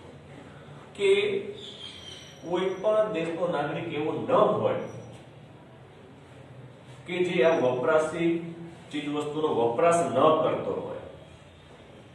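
A middle-aged man speaks calmly in a small echoing room.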